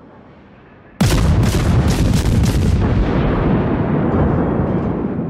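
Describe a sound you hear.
Heavy naval guns fire a booming volley, followed by rumbling.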